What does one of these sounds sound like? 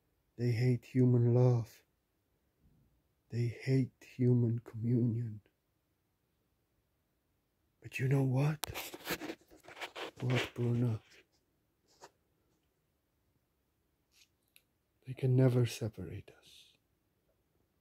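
A middle-aged man talks calmly and close up, in short bursts with pauses.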